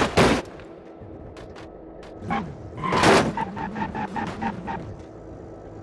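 Concrete blocks crash and clatter as a car slams into them.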